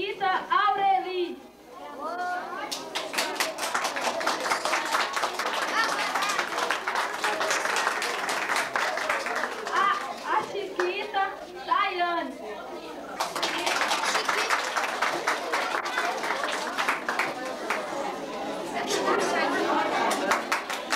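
A young woman speaks through a microphone and loudspeaker in an echoing room.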